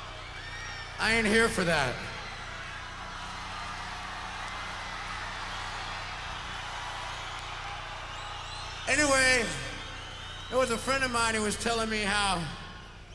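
A man sings loudly into a microphone, heard through loudspeakers in a large echoing hall.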